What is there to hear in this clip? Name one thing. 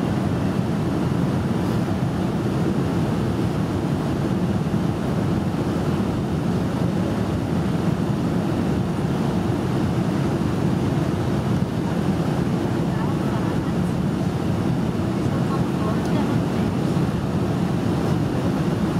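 A jet engine roars steadily from inside a plane cabin.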